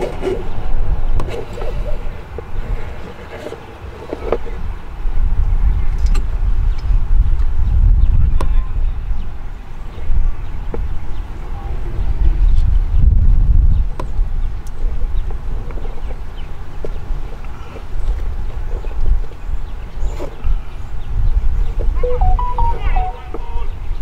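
Wind blusters and rumbles outdoors.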